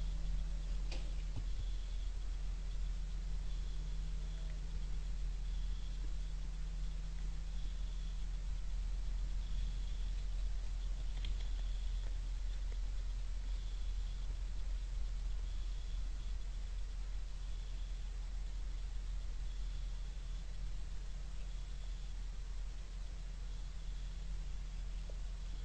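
A deer crunches corn close by.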